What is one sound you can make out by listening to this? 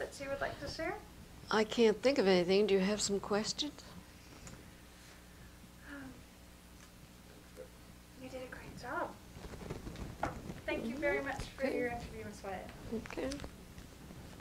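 An elderly woman speaks calmly and close to a microphone, with pauses.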